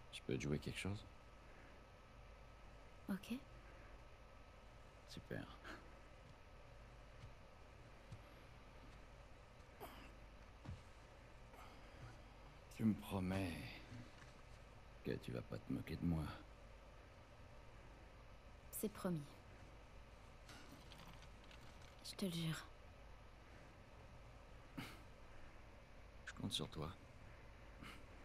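A man speaks calmly and softly, close by.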